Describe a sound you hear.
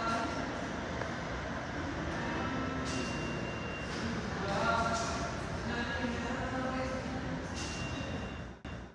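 A train rumbles as it approaches through an echoing tunnel.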